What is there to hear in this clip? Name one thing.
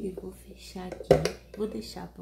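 A lid thumps shut on an appliance.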